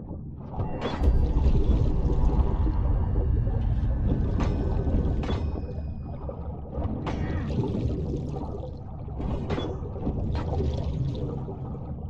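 Water rushes and rumbles as a swimmer pushes fast through it.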